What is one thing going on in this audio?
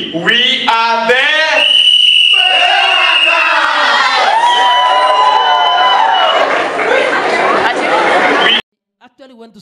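A group of young men and women sing loudly together.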